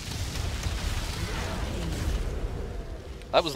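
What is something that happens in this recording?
Magic spell effects whoosh and crackle in a battle.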